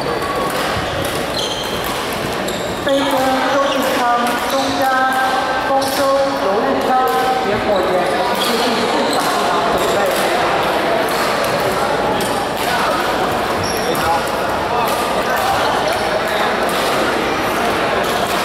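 Badminton rackets strike a shuttlecock with sharp pops.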